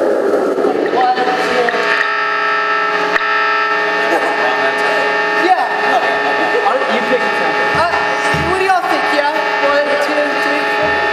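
A young man talks animatedly, close by, in an echoing hall.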